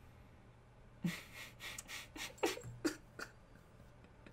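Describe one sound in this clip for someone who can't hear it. A man chuckles softly, close to a microphone.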